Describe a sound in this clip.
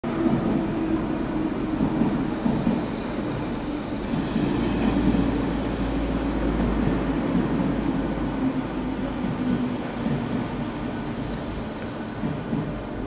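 A train rumbles into an echoing underground station and comes to a stop.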